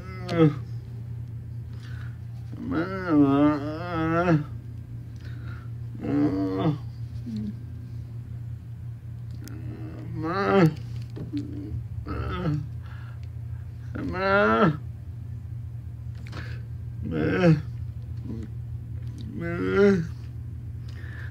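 A middle-aged man speaks close to a phone microphone in short, drawn-out phrases.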